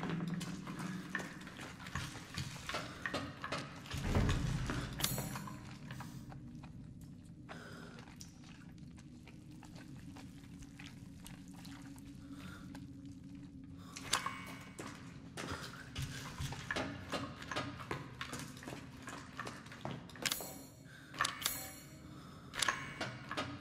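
Footsteps tread on a hard floor in an echoing space.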